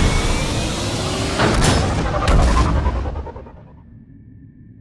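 Spacecraft engines roar loudly and fade as a shuttle lifts off.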